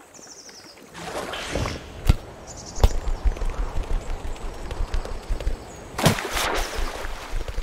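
Water splashes loudly as a small creature bursts out of it.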